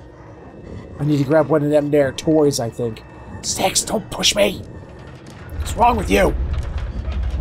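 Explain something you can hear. A man talks calmly and close into a microphone.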